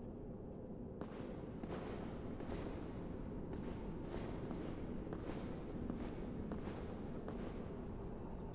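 Heavy armored footsteps clank softly at a steady pace.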